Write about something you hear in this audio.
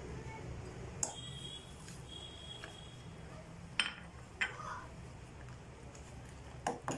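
A metal spoon clinks against a steel pot.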